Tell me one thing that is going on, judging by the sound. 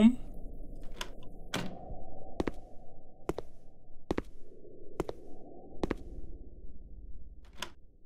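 Slow footsteps thud on a wooden floor.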